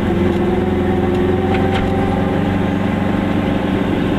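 A bus rumbles past close by.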